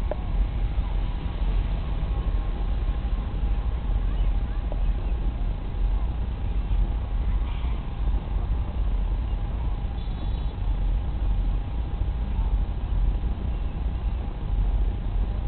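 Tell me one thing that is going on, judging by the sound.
A model plane's electric motor whines steadily in the distance.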